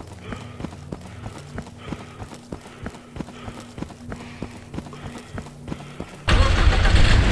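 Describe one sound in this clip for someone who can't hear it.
Footsteps crunch steadily on snowy ground.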